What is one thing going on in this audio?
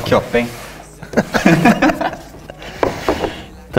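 A cardboard box slides and knocks on a table.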